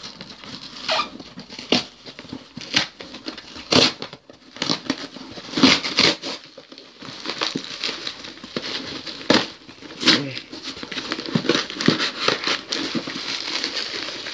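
Cardboard rustles and crinkles as a box is handled.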